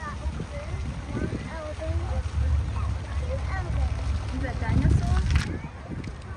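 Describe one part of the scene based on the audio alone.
A fountain's jet of water splashes into a pool.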